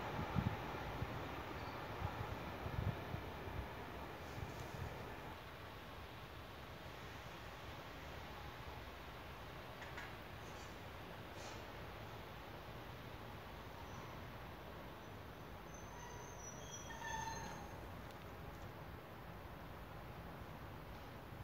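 A distant train rumbles faintly as it approaches along the tracks.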